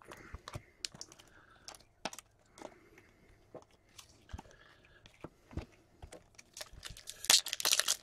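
Cards tap and shuffle against each other.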